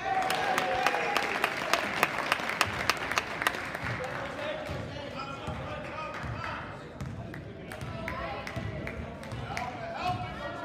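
A basketball bounces rapidly on a hard floor in a large echoing gym.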